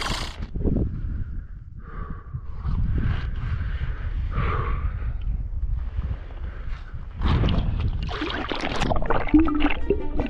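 Water sloshes and splashes.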